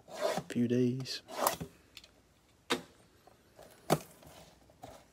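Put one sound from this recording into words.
A blade slices through plastic wrap on a box.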